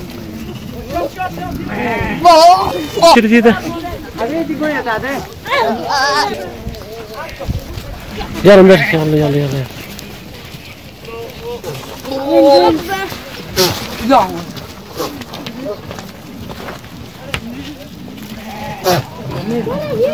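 Goats and sheep bleat in a pen.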